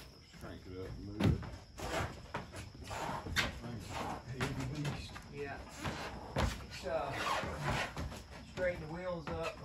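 Heavy objects clatter and thump inside a trailer.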